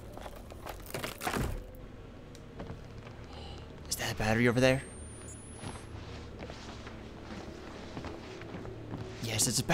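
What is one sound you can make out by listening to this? Footsteps thud on creaky wooden floorboards.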